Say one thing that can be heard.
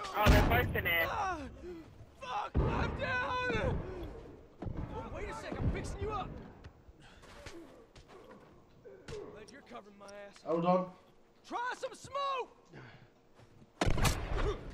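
Gunshots bang sharply.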